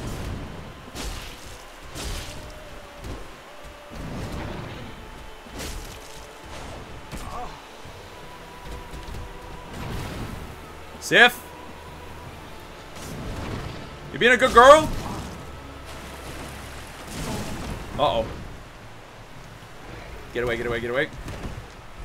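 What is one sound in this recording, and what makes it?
Heavy paws and blows thud on the ground.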